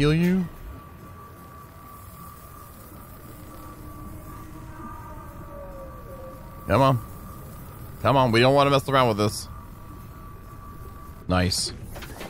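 A repair tool hums and crackles steadily.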